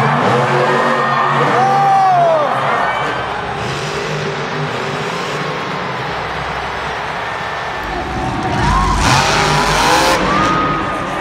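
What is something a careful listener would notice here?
A large crowd cheers and screams in a big arena.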